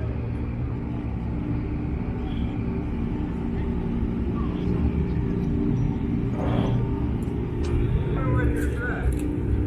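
Men talk quietly nearby outdoors.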